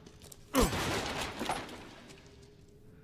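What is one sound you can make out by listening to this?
A wooden crate smashes apart with a loud crash.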